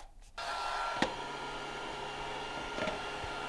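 A small fan hums steadily.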